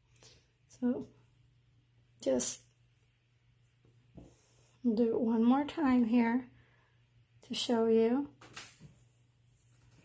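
Hands rustle cotton macrame cord while tying a knot.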